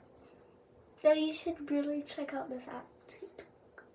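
A young girl speaks with animation up close.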